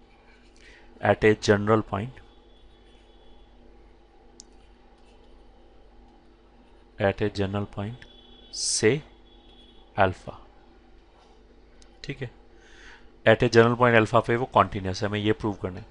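A man speaks calmly into a close microphone, explaining.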